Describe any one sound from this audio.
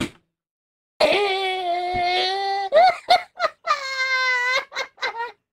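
A young man shouts in long, drawn-out cries into a microphone.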